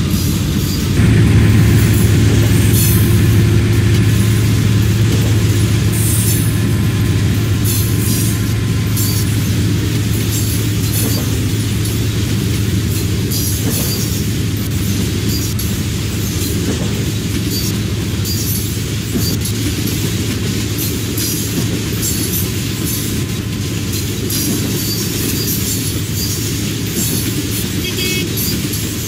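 A diesel locomotive engine drones steadily.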